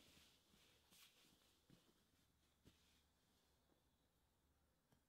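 Fabric rustles softly as hands smooth and handle it.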